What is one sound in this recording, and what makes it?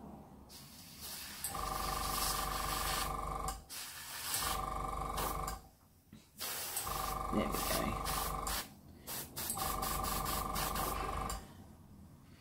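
An airbrush hisses in short bursts of spraying.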